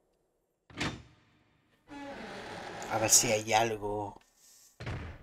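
Heavy doors creak open.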